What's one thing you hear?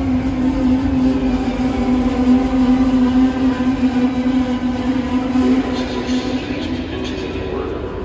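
An electric train hums steadily as it pulls slowly away under a large echoing roof.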